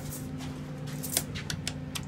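A lift button clicks as a finger presses it.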